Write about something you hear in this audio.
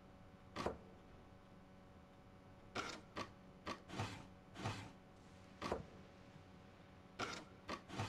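Wooden blocks slide and clunk into place.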